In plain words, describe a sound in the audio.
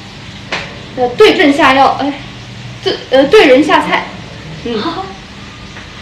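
A young woman talks close by in a lively voice.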